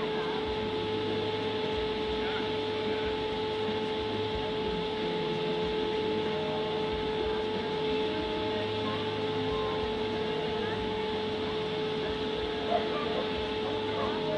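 An air blower hums steadily nearby.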